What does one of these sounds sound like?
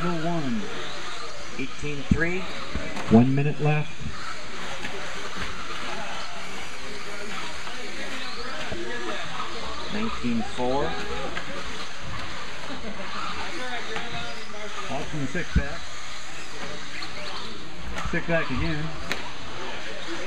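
Men talk and call out nearby in a large echoing hall.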